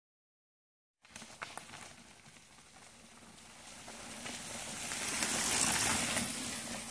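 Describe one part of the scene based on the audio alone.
Bicycle tyres roll over a dirt trail, growing louder as the bike comes closer.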